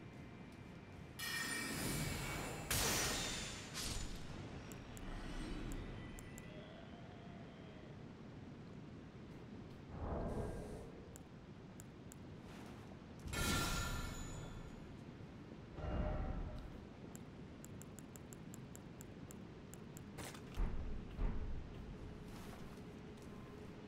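A young man talks quietly through a headset microphone.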